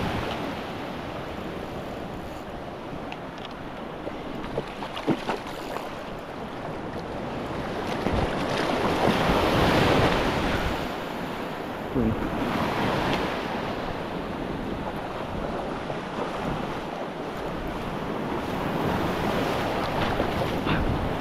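Water rushes and churns steadily close by.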